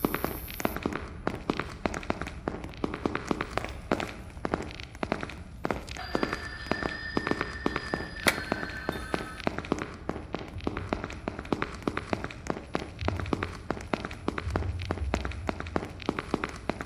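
Footsteps tap on a tiled floor.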